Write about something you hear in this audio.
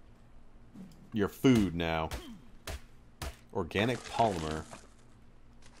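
A hatchet chops into a carcass with dull thuds.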